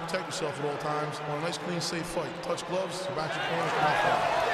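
A man speaks into a microphone, heard over loudspeakers in a large arena.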